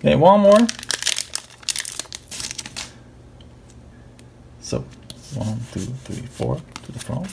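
Playing cards rustle and slide against each other in a person's hands.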